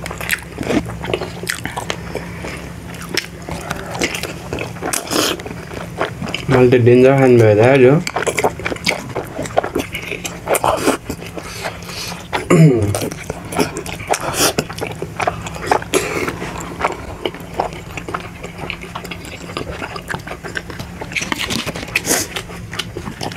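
Food is chewed wetly with lip smacks close to a microphone.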